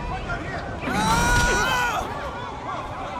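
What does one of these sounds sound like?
A car crashes down onto the street with a heavy metal crunch.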